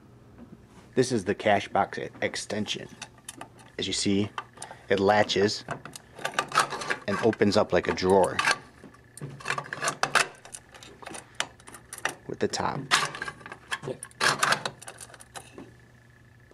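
Metal latches click and clink against a steel tin.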